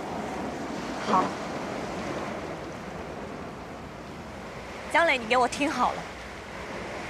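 A young woman speaks pleadingly up close.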